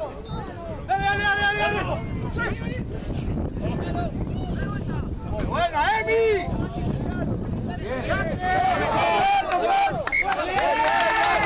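Young men shout loud calls to each other outdoors.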